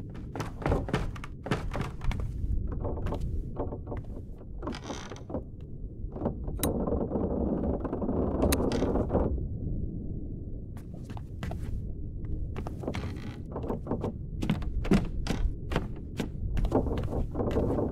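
Footsteps knock on wooden floorboards.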